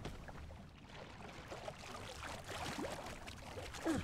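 Water splashes softly as someone wades through shallows.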